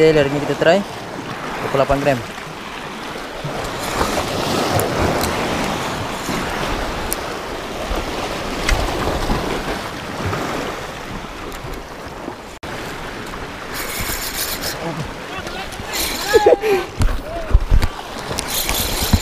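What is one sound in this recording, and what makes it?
Waves splash against rocks close by, outdoors in wind.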